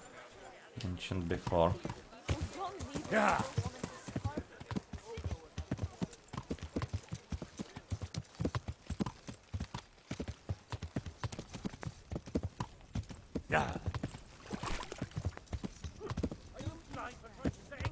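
Horse hooves clop quickly on hard ground.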